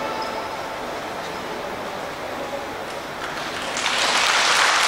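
String instruments play a tune through loudspeakers in a large hall.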